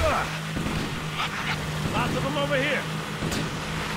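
A vehicle splashes through water.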